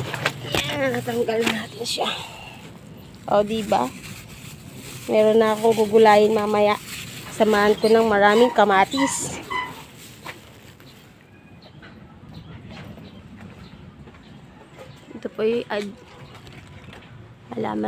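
Leaves rustle as they are brushed aside.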